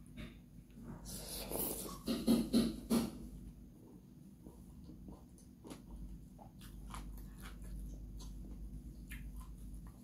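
A woman chews food loudly and smacks her lips close to a microphone.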